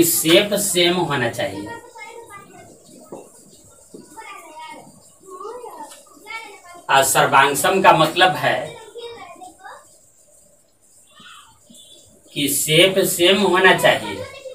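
A man speaks in a lecturing tone, close by.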